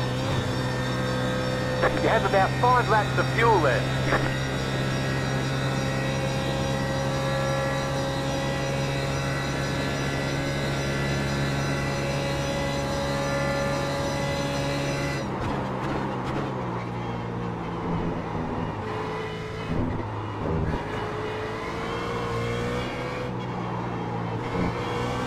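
A race car engine roars steadily at high revs.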